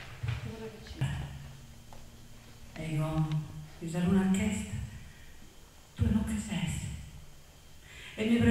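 A woman sings through a microphone.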